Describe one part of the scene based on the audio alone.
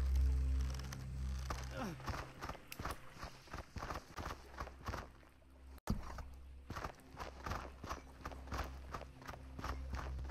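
Quick footsteps patter over dirt and stone.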